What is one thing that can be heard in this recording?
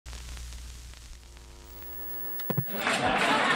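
A television hums with a steady test tone, then cuts off.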